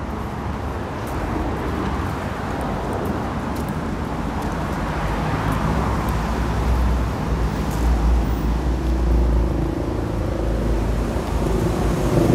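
Footsteps walk on pavement.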